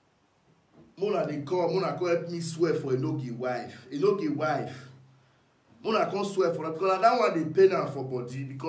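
A man talks calmly, close to a phone microphone.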